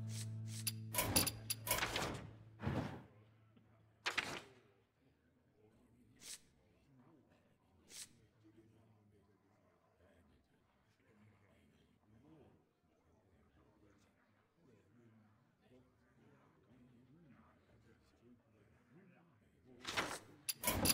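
A page turns with a short papery whoosh, several times.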